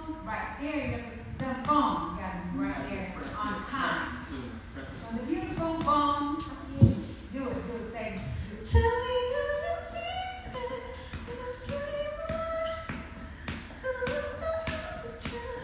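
A woman sings into a microphone through a loudspeaker in an echoing room.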